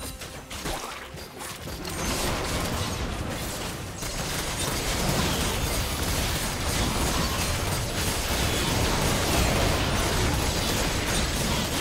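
Video game spells and attacks crackle and burst in a busy fight.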